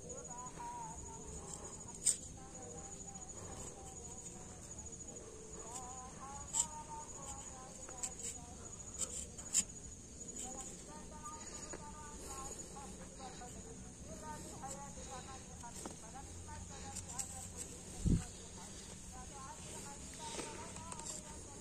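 A small knife scrapes and cuts into bark close by.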